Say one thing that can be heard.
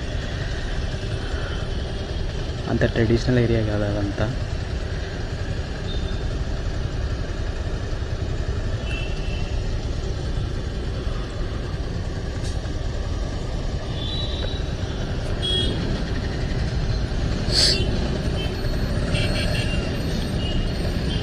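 Bus and motorbike engines rumble steadily in heavy traffic close by.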